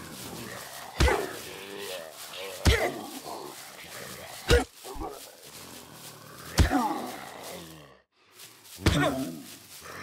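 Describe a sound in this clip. A weapon strikes with heavy thuds again and again.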